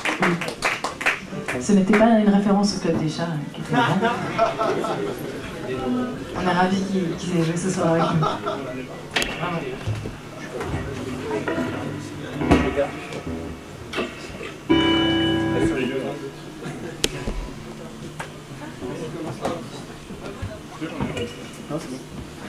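An electric guitar is plucked and strummed loosely.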